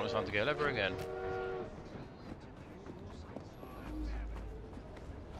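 Footsteps run over a hard street.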